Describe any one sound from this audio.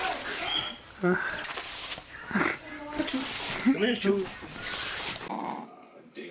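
A dog scratches and paws at bedding.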